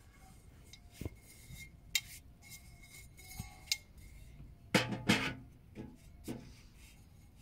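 A metal stovepipe clanks and scrapes as it is fitted onto a stove.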